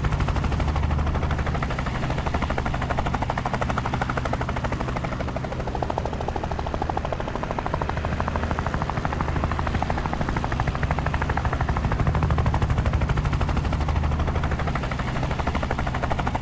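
A helicopter's rotor thuds as the helicopter flies.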